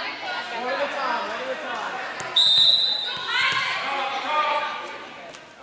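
Young girls call out and cheer in a large echoing gym.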